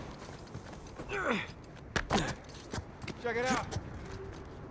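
A young man calls out with animation, nearby.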